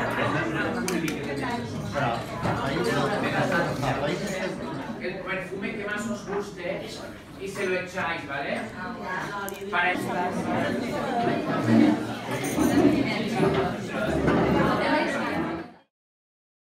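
Several women chatter over one another in a busy room.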